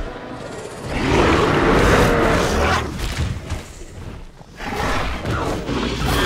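Large dinosaurs snarl as they fight.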